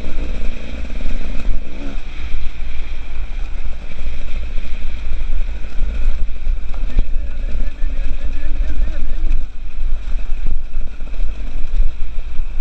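A two-stroke enduro motorcycle rides along a rocky dirt trail.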